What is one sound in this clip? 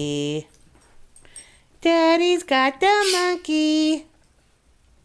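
Small dogs yelp and whine loudly.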